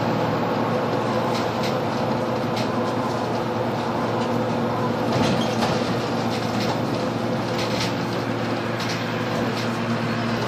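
A bus engine drones steadily from inside the moving bus.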